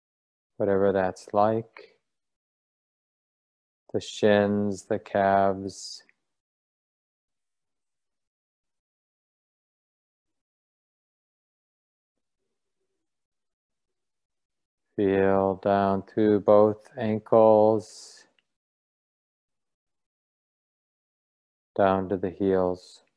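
A middle-aged man speaks calmly into a microphone in bursts, with long pauses.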